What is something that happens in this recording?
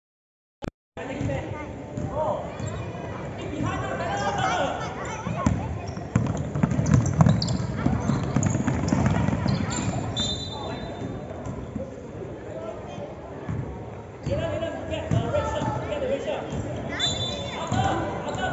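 Children shout and call out in a large echoing hall.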